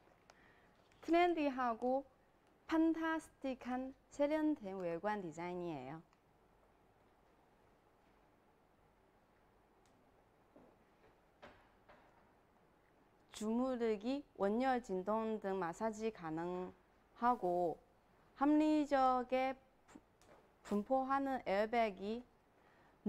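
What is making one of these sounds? A young woman speaks brightly and clearly, close to a microphone.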